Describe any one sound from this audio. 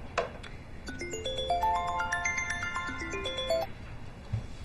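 A phone ringtone plays a bright melody.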